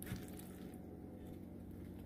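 A spoon scrapes against a bowl.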